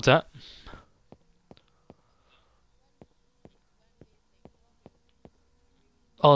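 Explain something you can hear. Footsteps tap lightly on hard ground.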